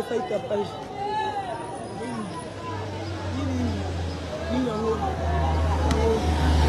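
A crowd of women and children talks and calls out outdoors.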